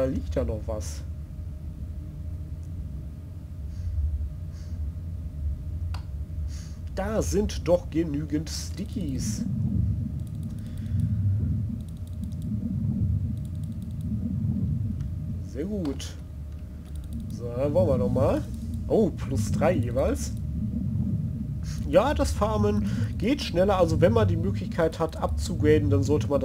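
A low underwater rumble drones steadily.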